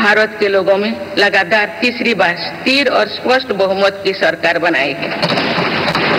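An elderly woman speaks formally into a microphone, in a large echoing hall.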